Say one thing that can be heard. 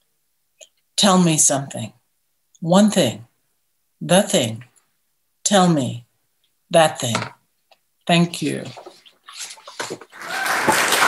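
An elderly woman speaks slowly and calmly over an online call.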